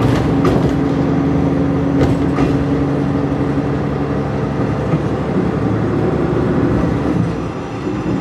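A diesel engine hums and then eases off.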